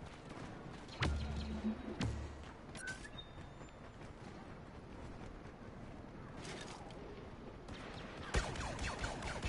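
Laser blasters fire sharp, booming shots in short bursts.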